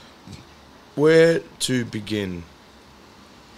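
A man speaks calmly and briefly into a close microphone.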